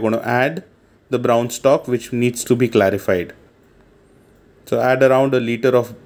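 A spatula scrapes and stirs food in a metal pot.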